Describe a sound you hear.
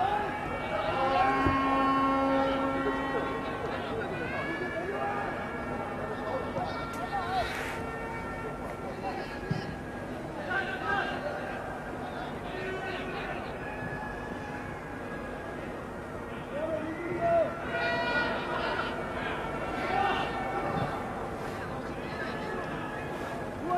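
A large stadium crowd murmurs and chants in the open air.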